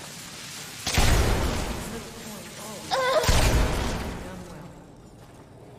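A crackling magical blast bursts loudly and fades.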